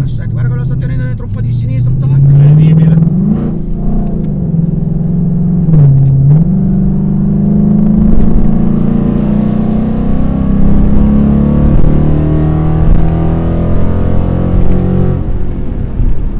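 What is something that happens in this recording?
A car engine roars loudly, revving up and down as it accelerates hard.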